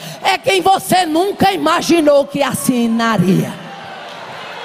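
An older woman shouts with passion through a microphone in a large echoing hall.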